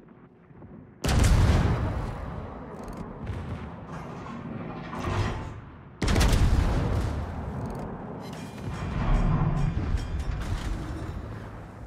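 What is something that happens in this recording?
Heavy naval guns fire in loud booming salvos that echo away.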